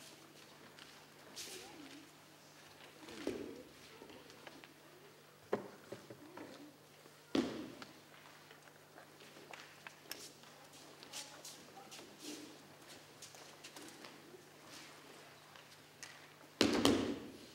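Fabric of uniforms rustles and swishes.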